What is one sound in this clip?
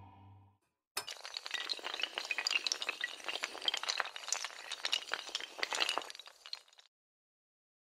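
Tiles clatter rapidly as they topple like dominoes.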